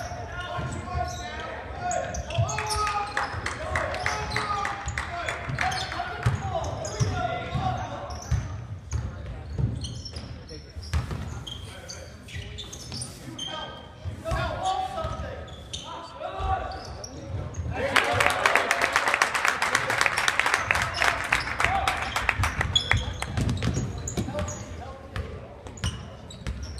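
A crowd of spectators chatters and calls out in a large echoing gym.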